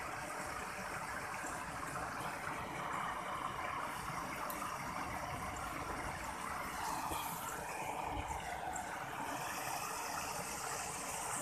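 Water trickles steadily along a narrow channel.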